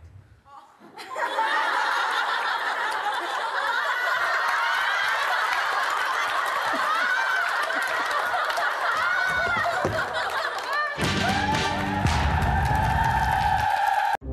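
An audience laughs and cheers in a large hall.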